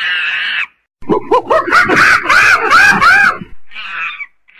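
A chimpanzee shrieks loudly.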